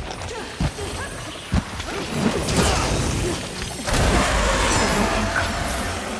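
A large monster roars loudly.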